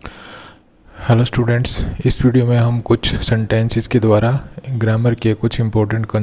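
A man speaks calmly and clearly into a nearby microphone.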